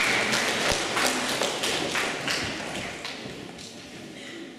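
An audience claps in a large echoing hall, and the applause fades.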